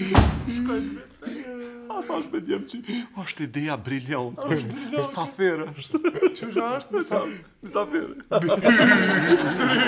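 Several men laugh loudly together.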